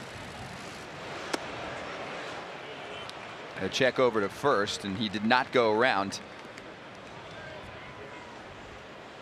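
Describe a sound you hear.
A crowd murmurs in a large open stadium.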